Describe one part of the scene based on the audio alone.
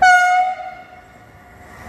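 A train horn blares loudly and briefly.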